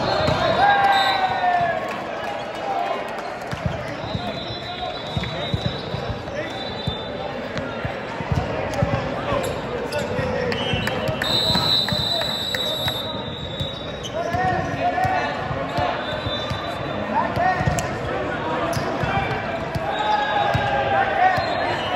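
Teenage boys call out to each other in a large echoing hall.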